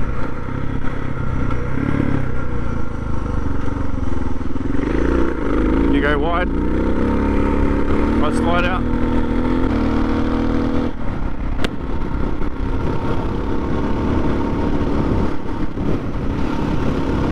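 A motorcycle engine roars and revs steadily.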